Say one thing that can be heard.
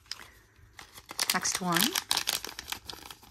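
A plastic foil wrapper crinkles.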